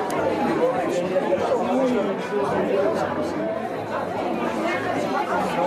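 A crowd of adults chatters close by.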